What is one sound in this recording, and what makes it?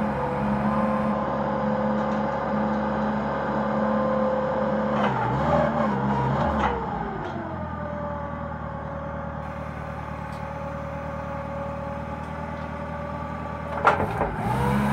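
A forklift's hydraulic lift whines steadily as the forks rise and lower.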